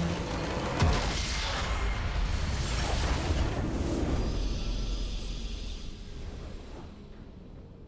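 A game tower crumbles with a loud rumbling crash.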